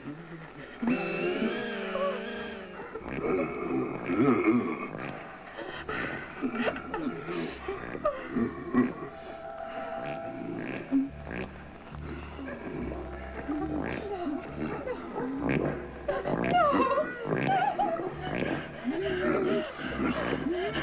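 A woman cries out and whimpers nearby.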